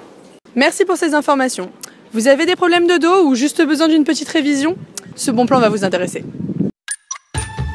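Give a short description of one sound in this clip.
A young woman speaks with animation into a handheld microphone, close by.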